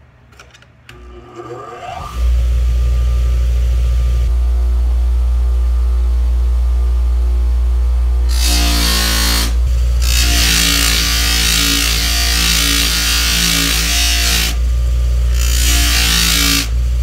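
A bench grinder motor whirs up to speed and hums steadily.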